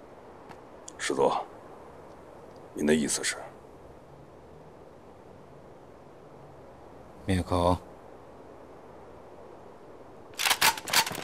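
A middle-aged man speaks in a low, quiet voice up close.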